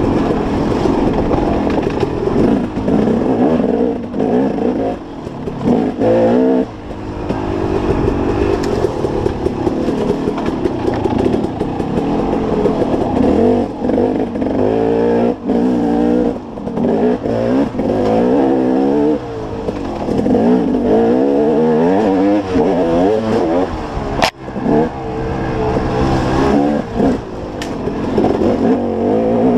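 Tyres crunch and bump over a rough dirt trail.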